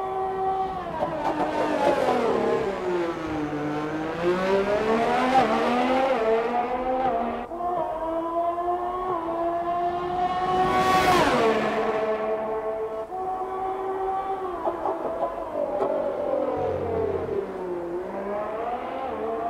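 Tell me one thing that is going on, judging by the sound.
A racing car engine screams at high revs, rising and falling in pitch as the car shifts gears.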